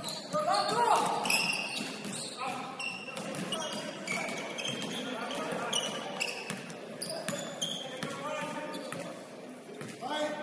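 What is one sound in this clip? A basketball thumps on the floor.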